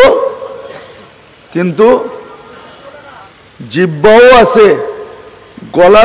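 An elderly man preaches loudly and with fervour into a microphone, his voice booming and echoing through loudspeakers.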